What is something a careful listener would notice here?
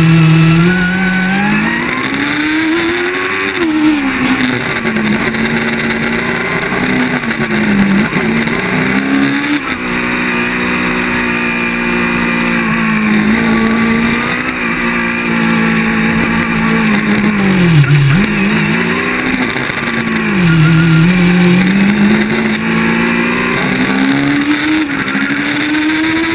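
A racing car engine roars up close, rising and falling in pitch as it speeds up and slows down through turns.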